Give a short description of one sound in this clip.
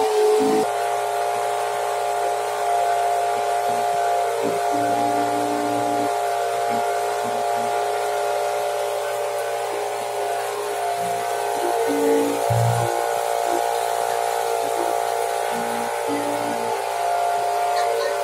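A boat engine drones steadily.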